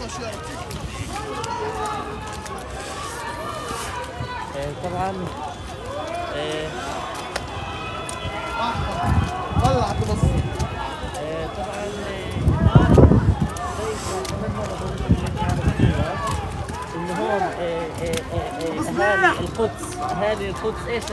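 A crowd of men shout and yell outdoors at a distance.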